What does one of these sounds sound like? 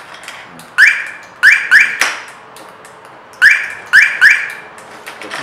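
A car alarm siren gives short rising chirps.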